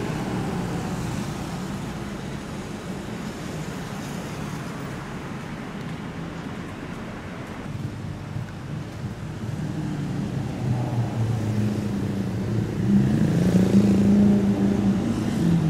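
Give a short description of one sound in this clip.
Traffic hums steadily.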